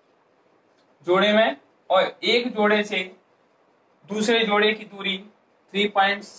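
A young man speaks clearly and steadily, close by.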